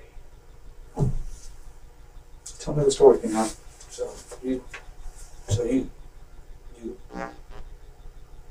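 A man speaks in short bursts, heard from a distance in a small room.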